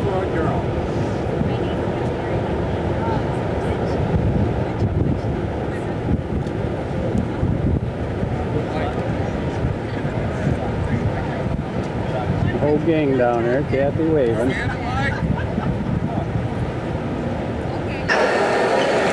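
Wind buffets outdoors with a low rumble.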